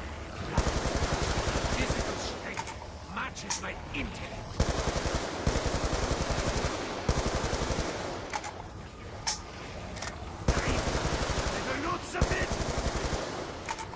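Electric crackling zaps in short bursts.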